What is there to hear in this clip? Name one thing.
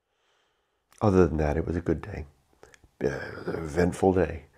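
A middle-aged man speaks calmly and close up through a microphone.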